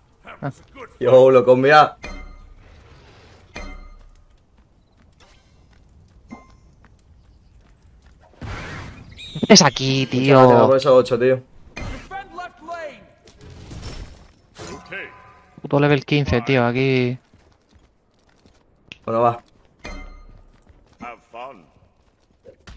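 A young man talks with animation into a close microphone, in bursts.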